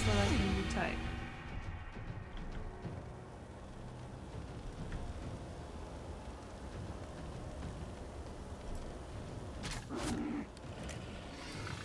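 Flames crackle and roar steadily.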